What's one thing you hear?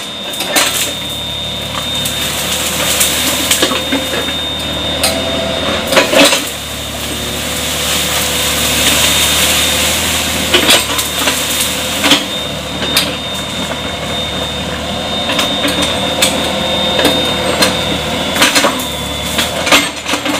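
A small excavator engine rumbles steadily nearby.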